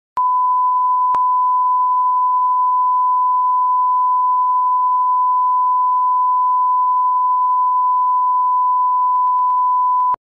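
A steady, high-pitched test tone sounds without a break.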